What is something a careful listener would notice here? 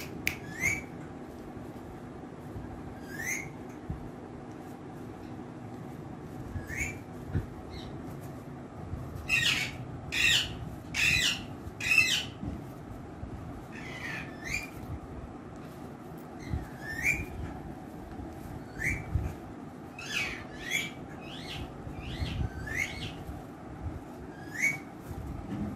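A parrot squawks and screeches loudly, close by, again and again.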